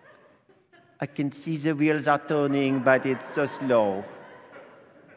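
A man sings loudly and with vigour in an echoing hall.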